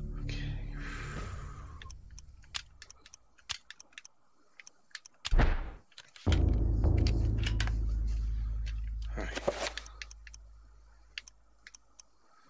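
Short clicks tick as game menu items are selected.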